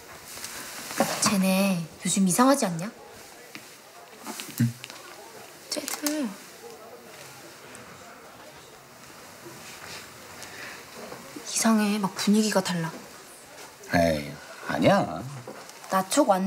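A young man speaks softly up close.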